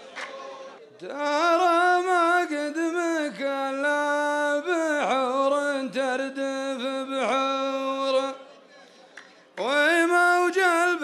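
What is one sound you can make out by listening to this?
A man chants poetry loudly into a microphone with a long, drawn-out voice.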